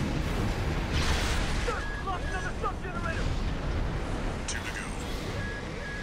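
A deep rumble of thrusters and explosions runs on throughout.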